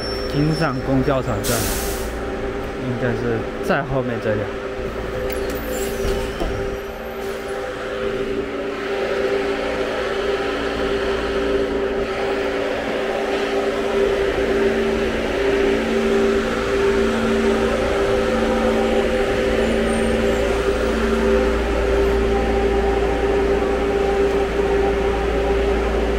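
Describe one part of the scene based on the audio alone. A bus engine idles with a steady hum nearby.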